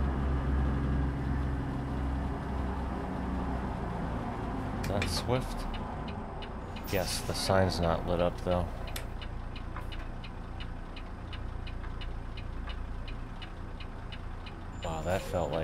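A truck engine rumbles low and steady.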